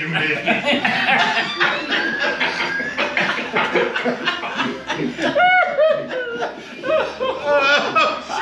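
Older men laugh heartily.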